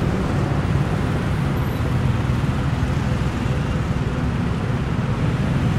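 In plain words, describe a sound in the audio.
Motorbike engines idle close by.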